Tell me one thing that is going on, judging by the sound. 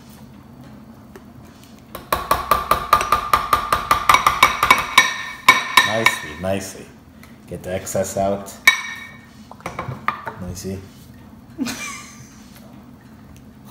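Spoons scrape and tap in bowls of foam.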